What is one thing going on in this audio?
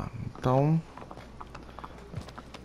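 A horse's hooves clop on stone.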